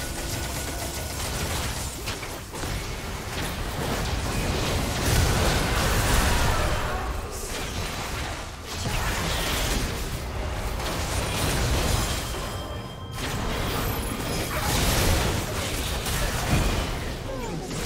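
Magic spells whoosh and blast during a fight.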